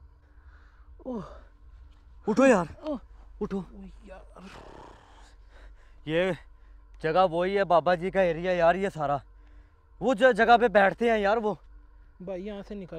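A second young man speaks loudly and angrily nearby.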